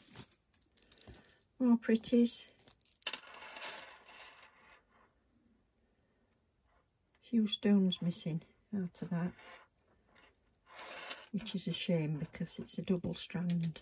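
Glass beads clink and rattle softly as a necklace is handled.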